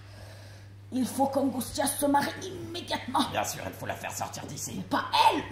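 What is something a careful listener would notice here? A woman speaks with animation, heard from a distance in a hall.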